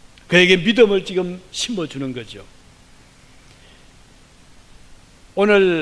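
An elderly man speaks with animation through a microphone.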